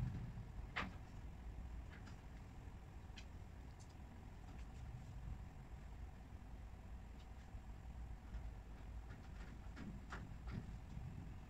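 Wooden cabinet panels knock and clack as they are fitted together.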